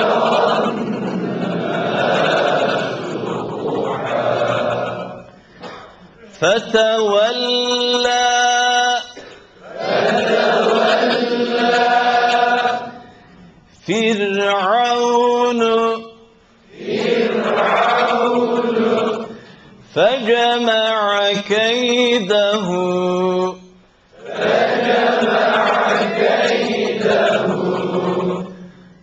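A man chants melodically through a microphone in long phrases with short pauses.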